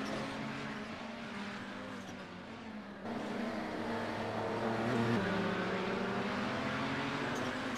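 Racing car engines roar and whine as the cars speed past.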